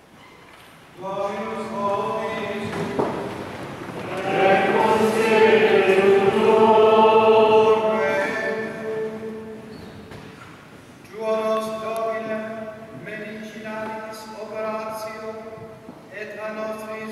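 An elderly man chants in a large echoing hall.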